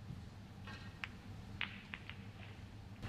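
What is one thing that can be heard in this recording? Snooker balls click sharply against each other.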